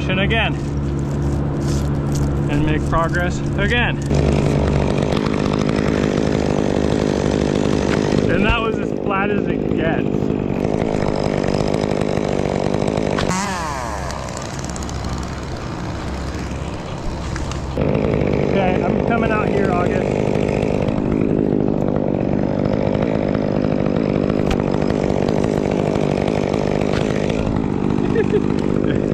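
A chainsaw engine runs close by with a steady rumble.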